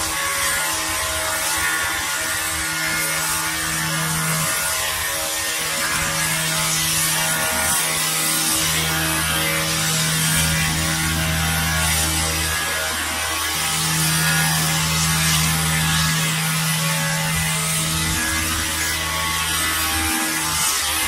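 A string trimmer whines steadily nearby, cutting grass.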